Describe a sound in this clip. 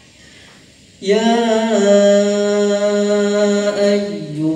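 A man chants in a long, drawn-out melodic voice through a loudspeaker.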